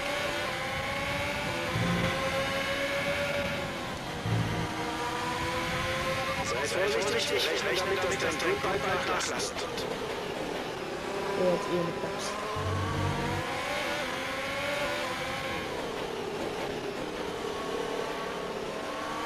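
A racing car engine screams at high revs, rising and dropping in pitch with gear changes.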